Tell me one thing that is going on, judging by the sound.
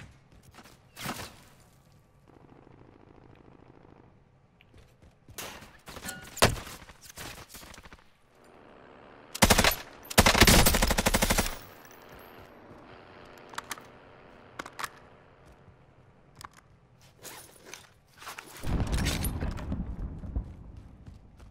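Rifle shots crack in rapid bursts.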